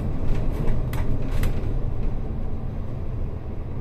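A light rail train rolls past nearby.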